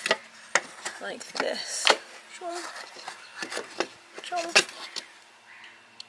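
A wooden board knocks and scrapes as it is slid into a wooden box.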